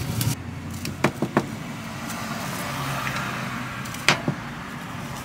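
A spoon scrapes and taps against a bowl.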